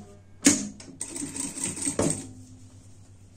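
A sewing machine whirs as it stitches.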